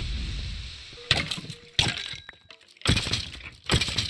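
A sword strikes and hits creatures repeatedly.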